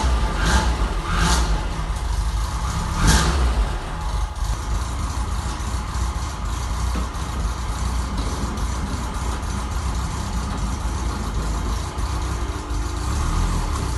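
A car engine idles with a steady, deep rumble in an echoing room.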